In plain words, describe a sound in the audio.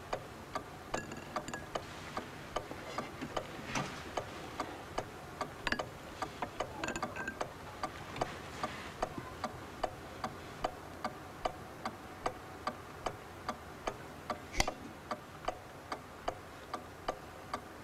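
A clock ticks steadily nearby.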